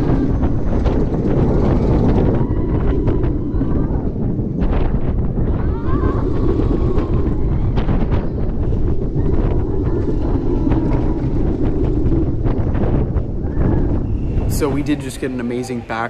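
Wind roars past, buffeting close by.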